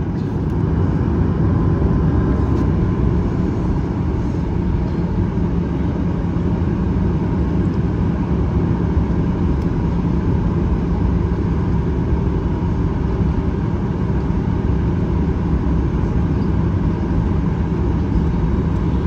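An airliner's wheels rumble over the ground as it taxis.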